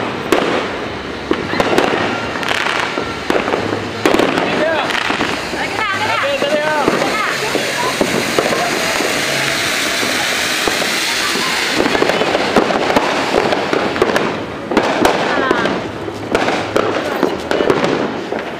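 Firecrackers pop and bang nearby.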